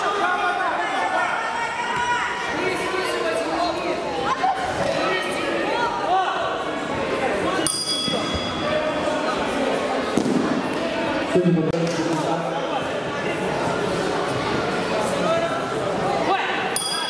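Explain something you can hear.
A woman referee calls out commands.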